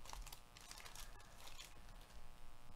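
Foil wrappers crinkle and rustle.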